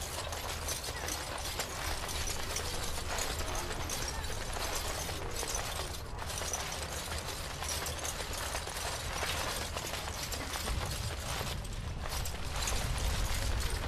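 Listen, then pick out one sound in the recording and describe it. Armoured footsteps thud on stone as a figure runs.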